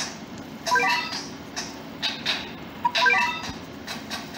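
Bright electronic chimes ring out in short cheerful bursts.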